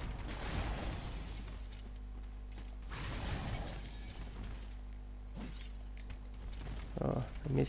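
A large creature thrashes and stomps heavily.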